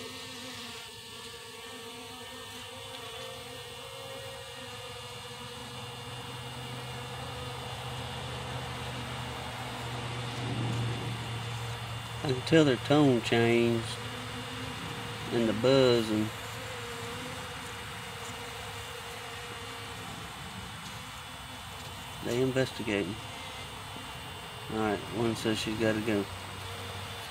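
Honeybees buzz in a low, steady drone close by.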